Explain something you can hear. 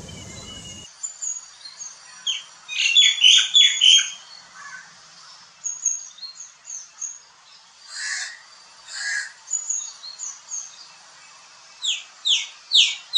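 A common myna calls with varied chirps and chattering notes.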